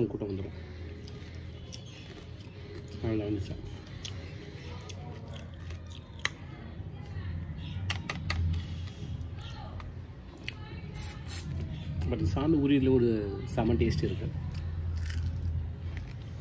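A young man chews and smacks his lips while eating.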